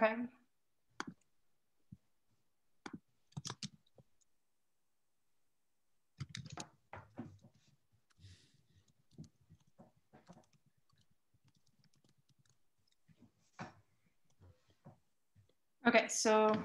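Keys clatter on a keyboard in short bursts.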